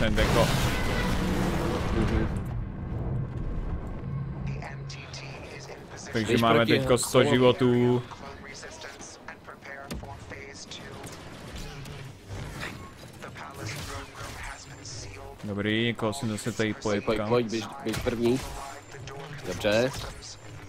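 A lightsaber hums and swishes.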